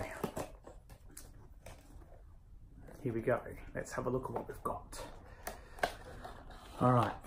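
A cardboard box rustles and taps in a man's hands.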